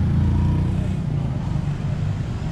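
Traffic hums and rumbles on a busy street.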